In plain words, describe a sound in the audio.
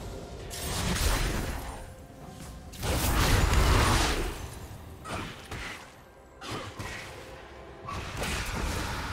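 Game weapons clash with sharp hits.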